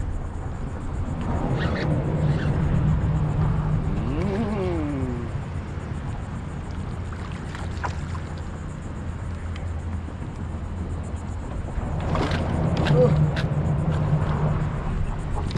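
Water laps against a kayak.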